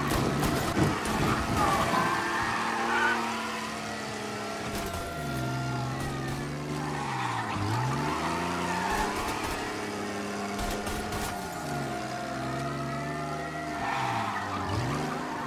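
A car engine revs up and down as it speeds along.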